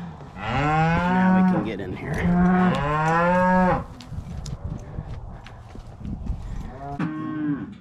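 Hooves shuffle on dry dirt.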